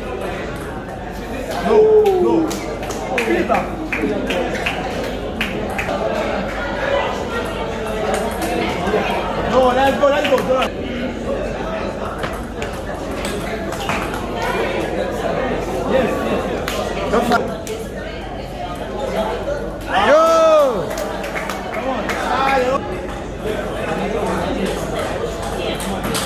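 Spectators chatter and call out in an echoing hall.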